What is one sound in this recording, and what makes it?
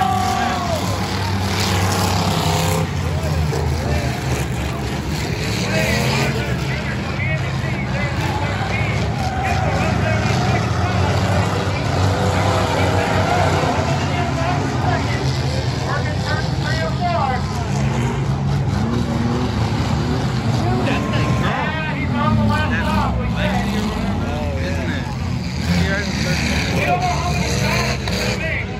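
Race car engines roar and whine loudly as the cars lap a track.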